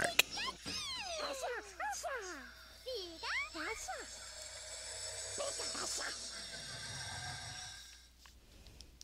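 A magical portal hums and shimmers.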